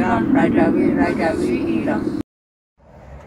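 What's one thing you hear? Two women chant loudly close by.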